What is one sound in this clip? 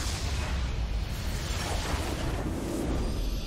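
A magical spell crackles and bursts in a burst of game sound effects.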